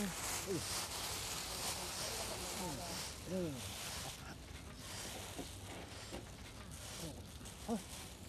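A plastic bag rustles as it is handled.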